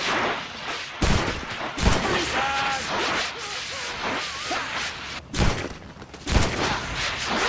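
Gunshots crack loudly, a few seconds apart.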